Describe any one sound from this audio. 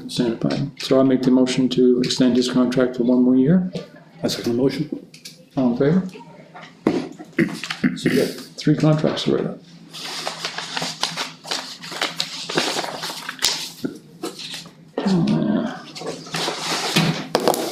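A middle-aged man speaks calmly in a small room.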